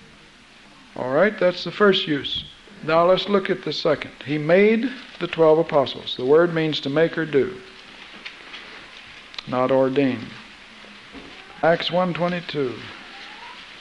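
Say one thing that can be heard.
A man sings in a clear voice, in short phrases with pauses between them.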